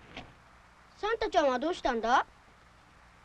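A young child calls out in a high voice nearby.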